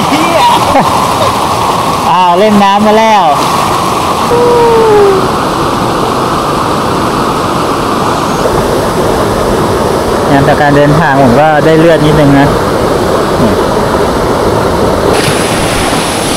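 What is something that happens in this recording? A stream rushes steadily over rocks nearby.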